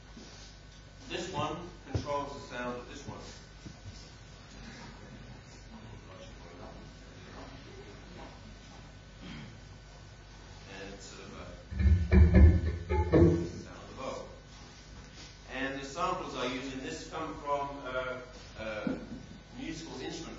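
A man speaks calmly to an audience in a hall.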